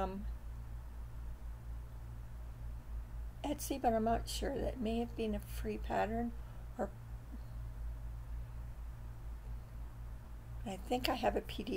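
An older woman speaks calmly and close to a microphone.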